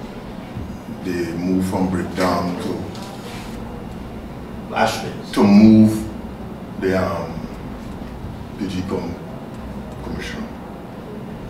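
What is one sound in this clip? A middle-aged man speaks calmly into a microphone, in short bursts with pauses.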